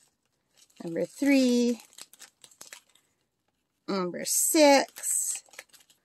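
A plastic bag rustles and crinkles in someone's hands.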